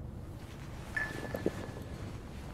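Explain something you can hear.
A phone clatters onto a hard floor.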